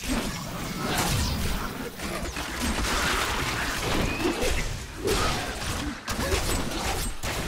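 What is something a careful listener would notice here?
Creatures shriek and groan as they are hit.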